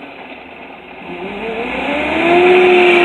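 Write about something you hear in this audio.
A truck engine revs up loudly.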